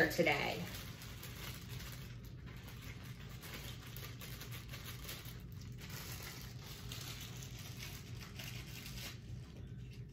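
A plastic wrapper crinkles in hands.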